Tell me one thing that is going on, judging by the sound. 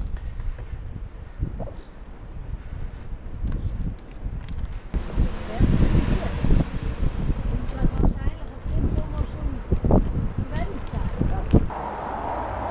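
Wind blusters loudly against the microphone outdoors.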